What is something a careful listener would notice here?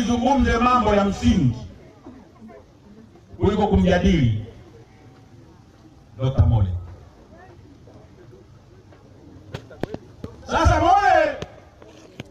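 A man speaks loudly through a microphone and loudspeaker outdoors, in short bursts with pauses.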